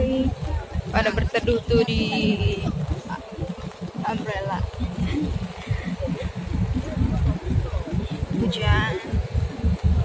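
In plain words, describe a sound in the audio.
A crowd of adults chatters outdoors.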